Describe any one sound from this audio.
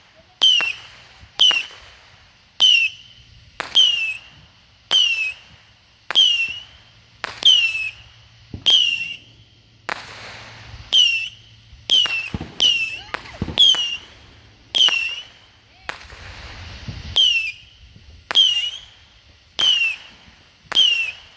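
A firework fountain sizzles and hisses briefly.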